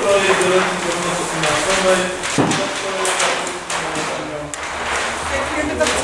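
Large sheets of paper rustle and crackle.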